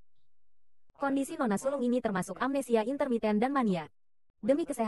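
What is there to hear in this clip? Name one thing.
A young woman speaks sharply.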